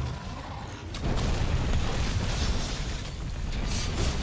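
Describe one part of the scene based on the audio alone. A large beast breathes a roaring blast of fire.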